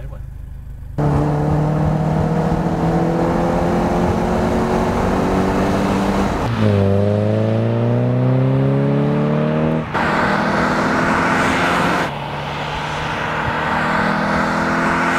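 A car engine roars loudly as the car speeds along and shifts through gears.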